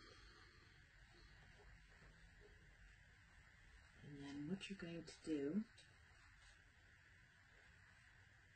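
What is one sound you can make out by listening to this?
Fabric rustles softly under a woman's hands.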